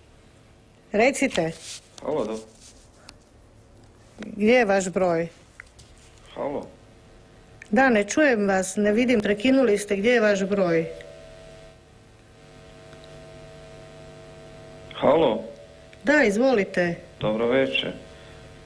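An elderly woman speaks calmly into a microphone, in bursts with pauses.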